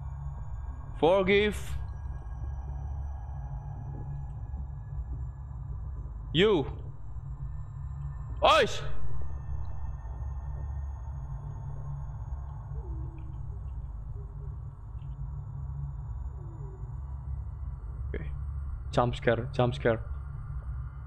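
A young man speaks briefly into a close microphone, in short bursts.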